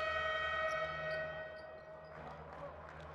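A referee's whistle blows a long, shrill blast.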